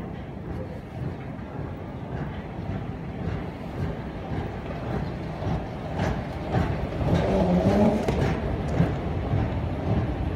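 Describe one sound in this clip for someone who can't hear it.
A moving walkway hums and rumbles steadily.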